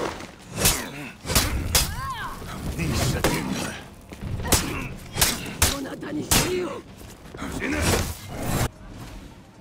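Steel swords clash and ring in a fight.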